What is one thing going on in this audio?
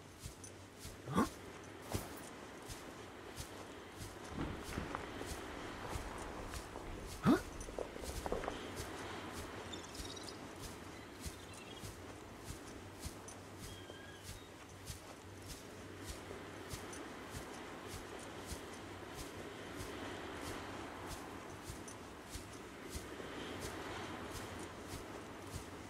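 Footsteps crunch steadily on dirt and rock.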